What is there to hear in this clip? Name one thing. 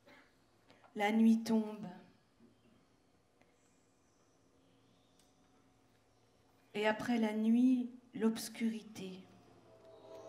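A woman sings into a microphone in short, strong phrases.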